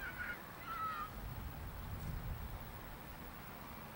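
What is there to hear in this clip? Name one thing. Wind gusts outdoors across the microphone.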